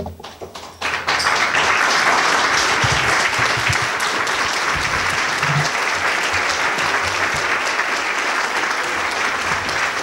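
Dinner guests applaud.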